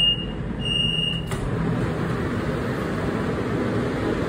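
Sliding train doors rumble open.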